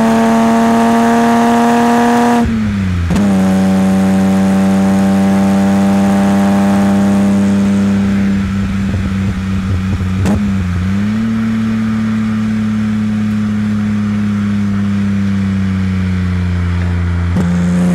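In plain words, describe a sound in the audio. A car engine roars loudly, revving up and dropping as the gears shift.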